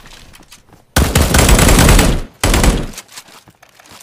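A rifle fires a rapid, loud burst.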